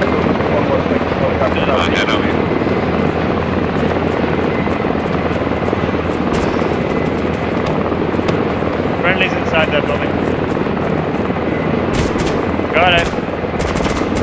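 Footsteps run through tall grass.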